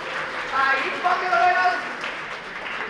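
A man calls out loudly in an echoing hall.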